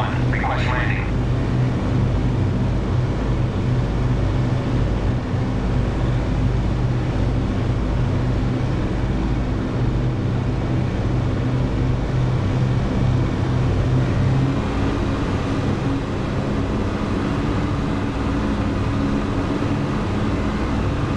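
An aircraft engine drones steadily and low.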